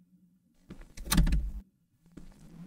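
A door handle rattles against a jammed lock.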